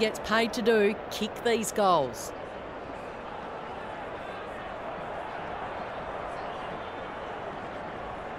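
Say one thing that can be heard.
A large crowd murmurs steadily in a big open stadium.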